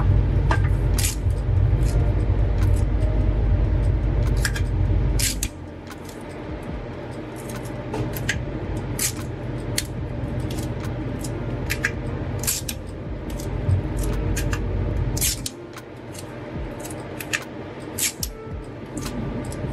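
Sticky tape is pulled and torn from a dispenser.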